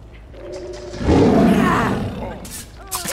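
A heavy blow lands with a loud, wet thud.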